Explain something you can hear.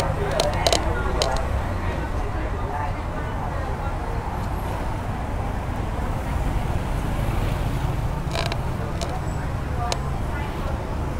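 Street traffic rumbles steadily in the background outdoors.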